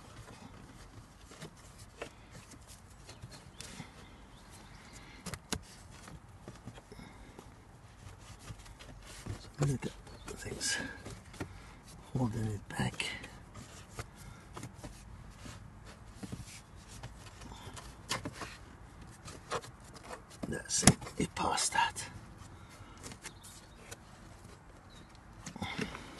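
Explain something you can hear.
A gloved hand slides a plastic filter in a housing, scraping and knocking.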